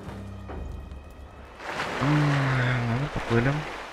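A figure splashes into water.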